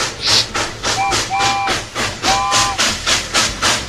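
A train whistle toots a few times.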